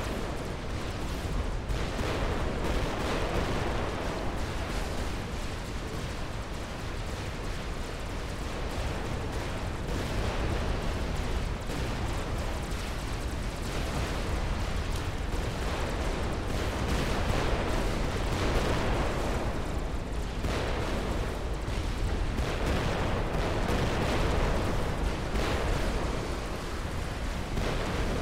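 Explosions and weapon fire rumble and crackle throughout a large battle.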